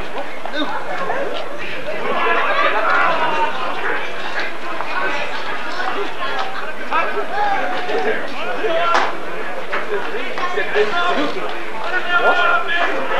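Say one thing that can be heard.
Men shout and call to each other among rugby players outdoors.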